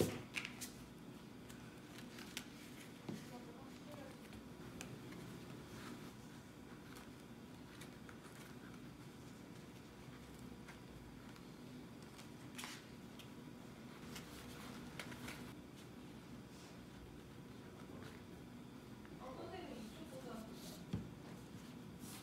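A leather wallet taps and rustles as it is handled and folded shut.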